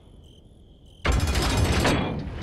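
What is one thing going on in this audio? A metal lever clanks as it is pulled.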